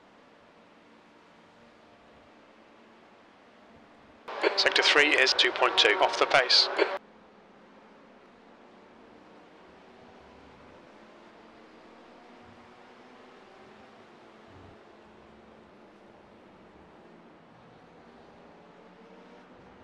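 Racing car engines drone faintly.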